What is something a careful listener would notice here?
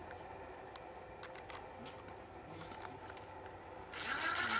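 Plastic parts click and rattle softly.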